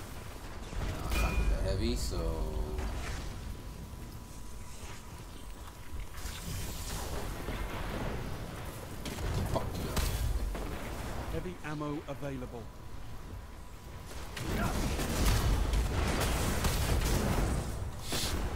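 Blasts and explosions boom loudly.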